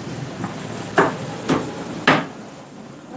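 A knife chops meat on a wooden board with sharp knocks.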